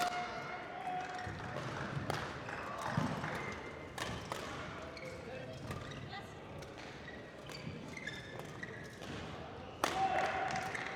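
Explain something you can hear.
Badminton rackets smack a shuttlecock back and forth, echoing in a large hall.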